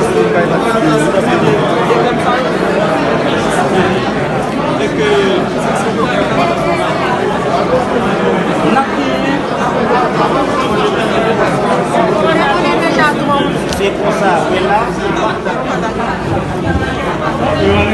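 A crowd of men and women chatter loudly all around in a large echoing hall.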